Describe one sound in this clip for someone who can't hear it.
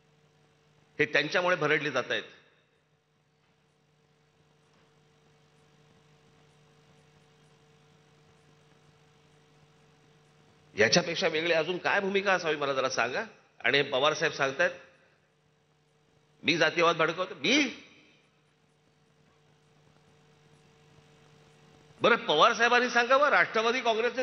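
A man gives a forceful speech through loudspeakers outdoors, with pauses between phrases.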